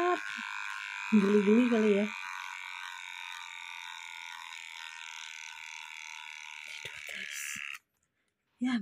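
Electric hair clippers buzz steadily up close.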